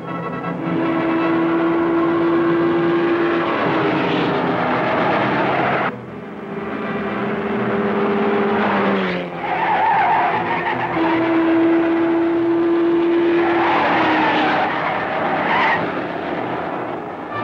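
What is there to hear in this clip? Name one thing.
Old cars roar along a dirt road at speed.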